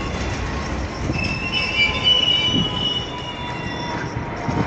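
Train brakes squeal high and thin.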